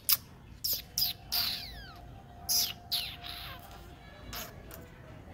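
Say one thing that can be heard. A dog whines in high, wavering tones close by.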